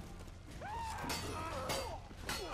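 Swords clash and ring.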